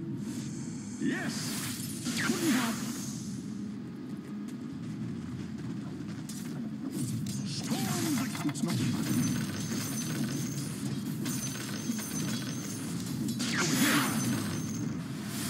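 Magic spells burst with loud whooshing blasts.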